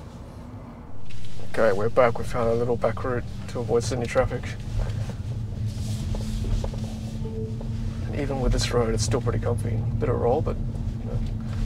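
A car hums and rumbles as it drives slowly.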